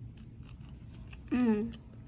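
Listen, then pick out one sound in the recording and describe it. A young girl slurps noodles.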